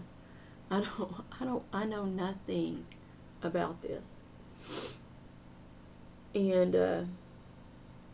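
A middle-aged woman talks calmly and close up, in short phrases with pauses.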